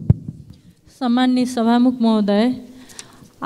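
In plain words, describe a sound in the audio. A woman speaks through a handheld microphone.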